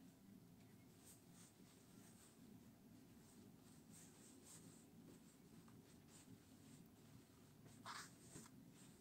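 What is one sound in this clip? Hands smooth and pat soft fabric with a faint swishing rustle.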